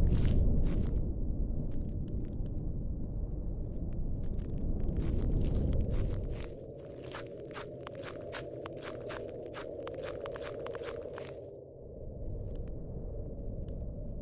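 Leafy bushes rustle as someone pushes through them.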